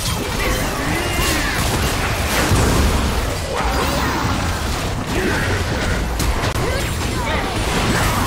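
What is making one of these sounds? Magic spells burst and whoosh in a game battle.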